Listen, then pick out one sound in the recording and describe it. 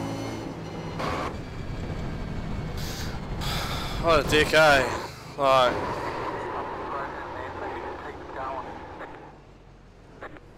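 A race car engine roars and drones steadily.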